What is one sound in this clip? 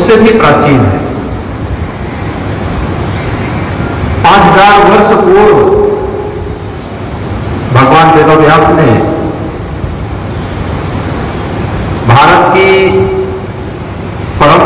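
A man speaks slowly into a microphone, his voice echoing through loudspeakers.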